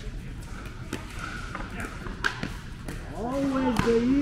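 Paddles strike a ball with sharp pops.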